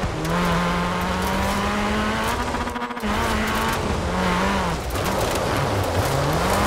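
A car engine revs loudly, its pitch rising and dropping with gear shifts.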